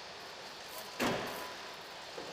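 A van door slams shut.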